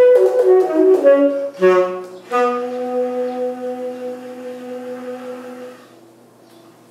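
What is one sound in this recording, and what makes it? A saxophone plays a lively run of notes, then holds a long low tone that fades.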